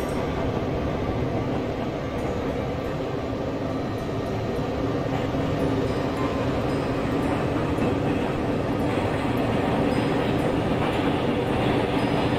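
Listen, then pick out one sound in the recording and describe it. An electric locomotive hums as it pulls away.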